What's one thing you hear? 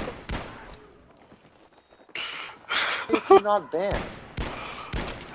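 Rifle shots crack loudly, a few seconds apart.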